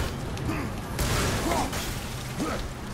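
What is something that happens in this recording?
A burst of flame whooshes.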